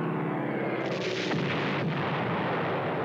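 A large blast booms.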